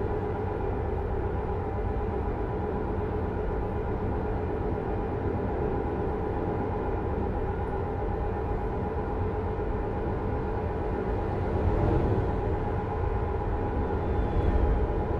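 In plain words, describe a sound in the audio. Tyres roll on a road.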